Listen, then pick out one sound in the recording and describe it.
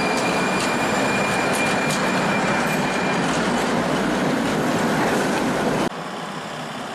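A tram rolls past close by, rumbling loudly.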